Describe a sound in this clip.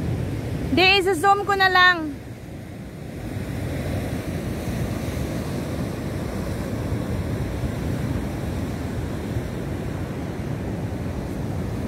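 Wind blows across the microphone with a low rumble.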